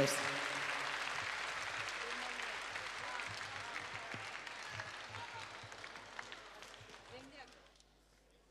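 An audience applauds and cheers, then fades away.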